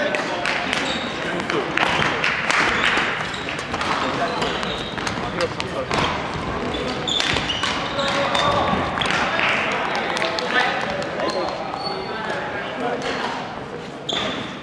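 Sneakers squeak and thud on a wooden floor.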